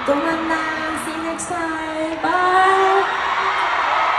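A young woman sings into a microphone over loud speakers in a large echoing hall.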